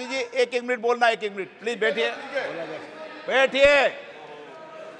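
A middle-aged man speaks forcefully into a microphone in a large hall.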